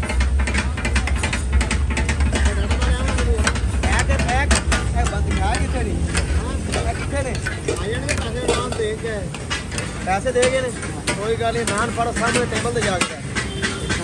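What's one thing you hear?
A metal spatula scrapes and chops on a griddle.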